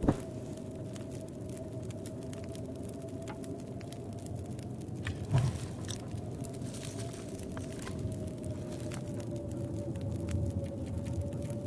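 A fire crackles and pops in a stove.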